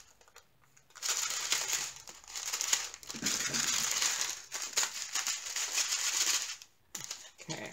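Tiny beads rattle and pour inside a plastic bag.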